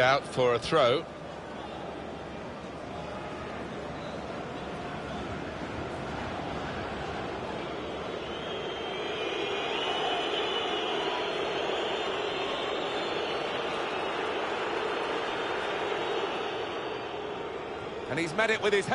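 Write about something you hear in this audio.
A large crowd murmurs and roars steadily, swelling louder for a while before fading.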